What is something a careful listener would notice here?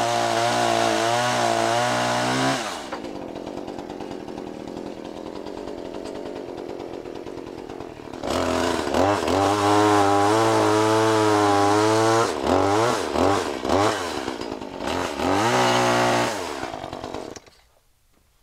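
A chainsaw engine idles and revs loudly.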